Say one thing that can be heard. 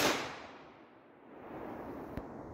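A shotgun fires with a loud blast that echoes outdoors.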